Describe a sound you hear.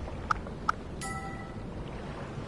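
A menu chime sounds briefly.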